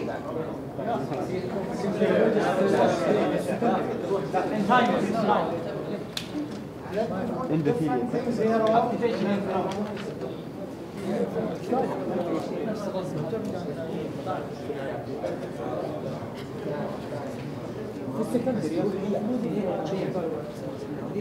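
A man lectures calmly through a microphone in an echoing room.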